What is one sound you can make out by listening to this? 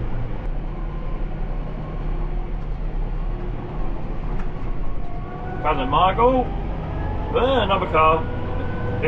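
A tractor engine hums steadily inside the cab.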